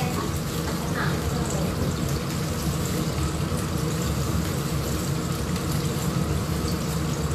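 Liquid bubbles and simmers steadily in a pan.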